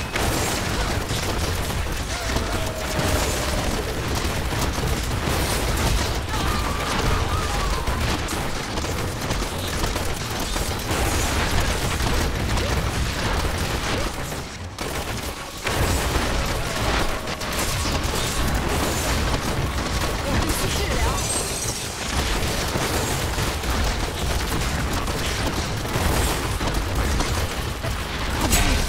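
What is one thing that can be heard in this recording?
Game spells crackle and blast in quick succession.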